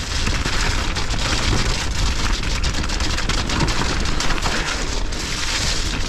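A bicycle frame clatters and rattles over bumps.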